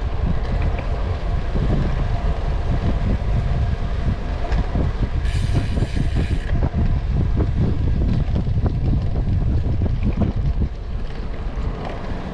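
Wind buffets a microphone as a cyclist rides at speed.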